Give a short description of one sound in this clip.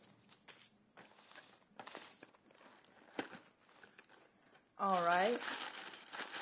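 Paper rustles and crinkles as a box is opened by hand.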